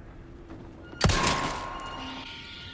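A pistol fires a single loud shot that rings out and echoes.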